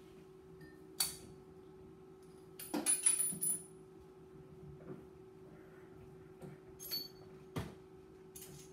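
Metal parts click and clatter.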